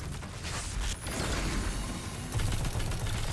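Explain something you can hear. A large blast booms and roars.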